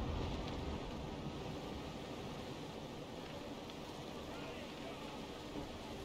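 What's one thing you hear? Waves wash against a ship's hull.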